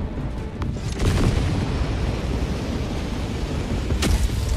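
A loud rushing blast bursts out as a landing pod fires its thrusters.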